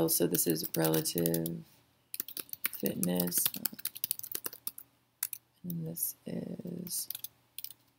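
A woman speaks calmly and close to a microphone, in short phrases.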